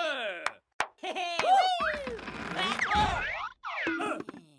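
A cartoon creature yells in alarm.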